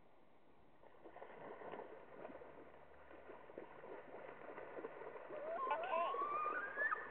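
Water splashes and churns as animals swim quickly across a pond.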